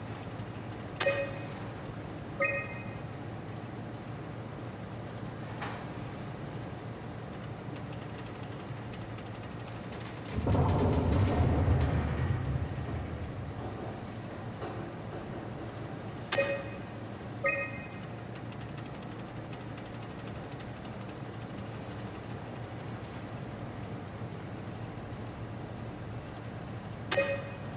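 Short electronic beeps chime as menu options are selected.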